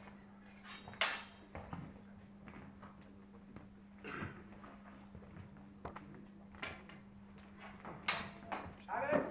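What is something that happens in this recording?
Swords clash sharply in a large echoing hall.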